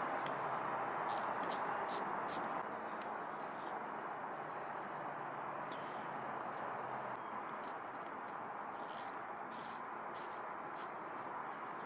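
A hand tool clicks and taps against metal.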